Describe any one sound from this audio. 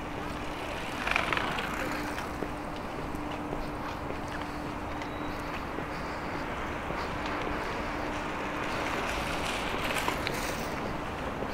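A bicycle rolls past.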